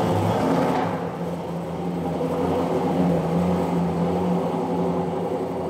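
A sports car engine rumbles loudly as the car drives slowly away, echoing off hard walls.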